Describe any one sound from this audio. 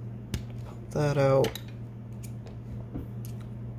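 Small plastic parts click and tap under a hand.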